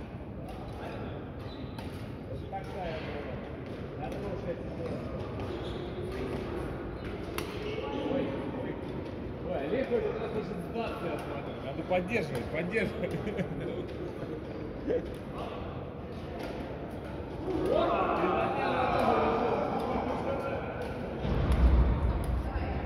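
Shuttlecocks are struck with rackets, with sharp pops, in a large echoing hall.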